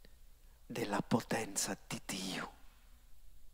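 A middle-aged man speaks with emphasis into a microphone, heard through loudspeakers.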